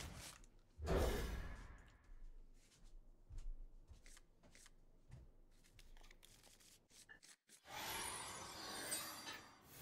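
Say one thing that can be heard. Cards swish and chime as they are dealt in a card game.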